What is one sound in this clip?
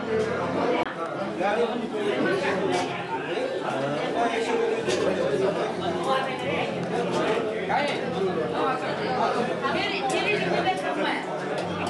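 Serving spoons clink against metal trays.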